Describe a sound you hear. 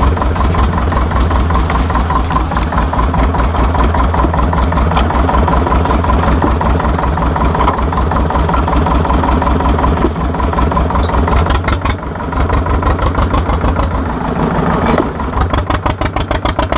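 An old tractor engine chugs loudly and steadily close by.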